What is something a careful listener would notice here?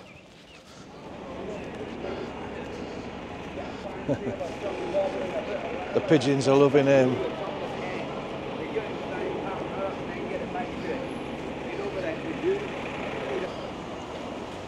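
People chatter in a busy outdoor square.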